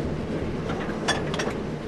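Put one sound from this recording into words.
Metal railway couplings clank together sharply.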